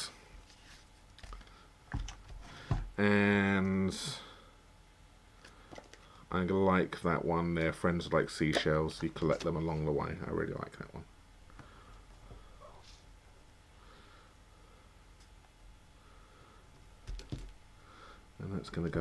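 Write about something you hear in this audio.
Clear plastic stamps rustle and crinkle as they are handled.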